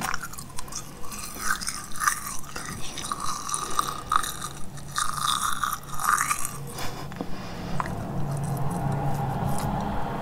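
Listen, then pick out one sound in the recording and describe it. A young woman makes soft, wet mouth sounds close to a microphone.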